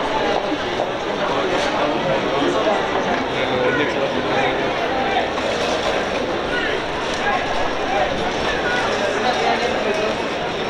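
A crowd chatters and calls out across an open outdoor stadium.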